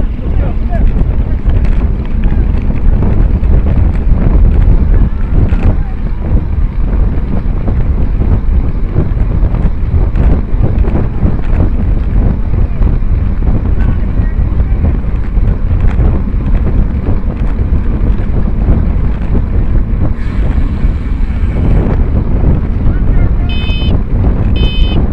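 Wind rushes loudly over a microphone.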